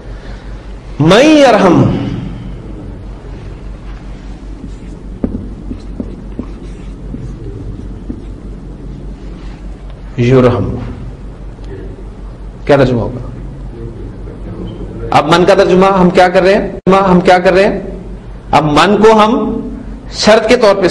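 A man speaks in a lecturing tone through a microphone, in bursts with pauses.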